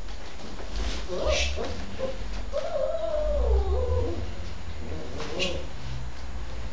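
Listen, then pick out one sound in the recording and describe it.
A puppy whines and whimpers softly, close by.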